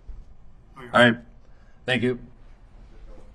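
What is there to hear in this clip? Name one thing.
A man speaks loudly and briefly through a microphone.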